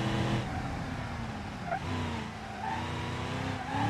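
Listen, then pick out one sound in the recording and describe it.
Tyres squeal briefly as a car turns.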